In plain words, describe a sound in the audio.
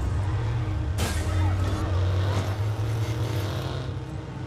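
A car crashes into a metal pole with a loud clang.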